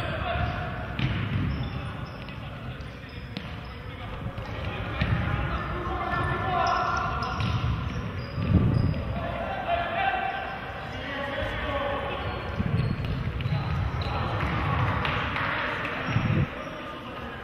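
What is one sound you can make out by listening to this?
A ball is kicked on a hard indoor court, with an echo from a large hall.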